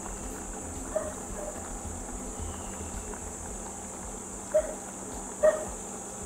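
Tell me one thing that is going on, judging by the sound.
Liquid pours into a pan of food.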